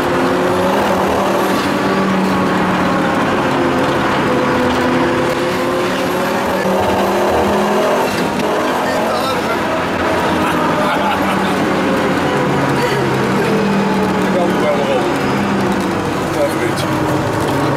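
A car engine roars loudly from inside the car, revving up and down as it speeds along.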